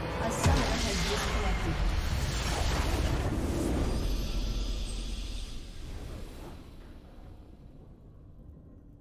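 A triumphant victory fanfare swells and then fades away.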